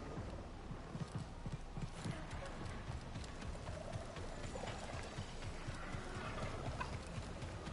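Footsteps run over rough ground.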